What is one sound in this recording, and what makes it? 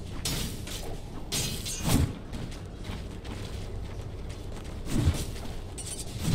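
Video game combat effects burst with sharp hits and whooshes.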